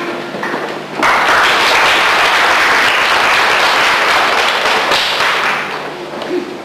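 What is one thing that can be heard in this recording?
An audience applauds loudly.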